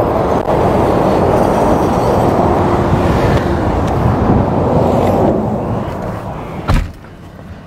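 Highway traffic roars past close by.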